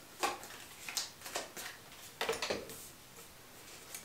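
A card is laid down on a table with a light tap.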